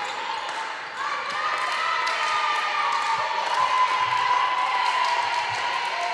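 Young women shout and cheer together in a large echoing hall.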